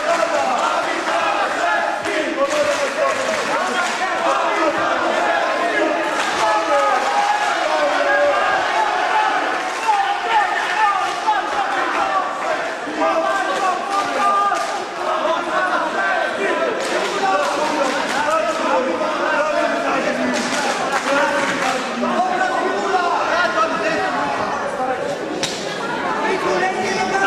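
A crowd of spectators shouts and cheers loudly indoors.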